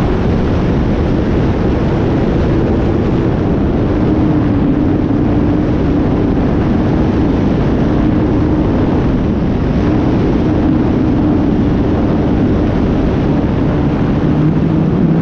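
A small aircraft engine drones steadily, with its pitch shifting slightly as it banks.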